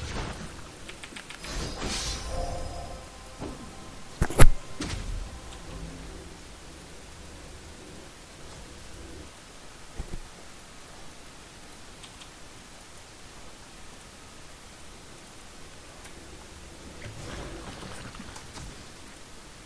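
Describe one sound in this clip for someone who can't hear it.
Magic spell effects whoosh and crackle in bursts.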